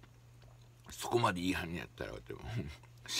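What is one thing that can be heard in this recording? A man slurps soup noisily.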